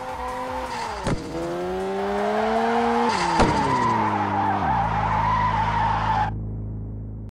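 Tyres screech loudly as a car drifts.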